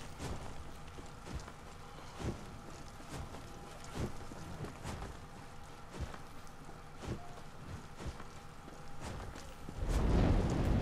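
Footsteps thud on soft ground at a running pace.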